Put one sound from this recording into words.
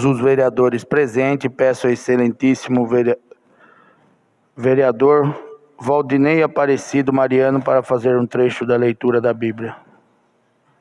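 A man speaks steadily through a microphone and loudspeakers in an echoing room.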